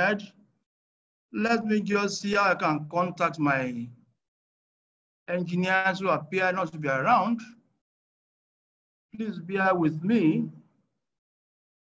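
An elderly man speaks calmly and slowly through an online call, with long pauses.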